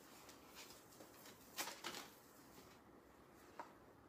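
Fabric rustles softly as it is shaken out.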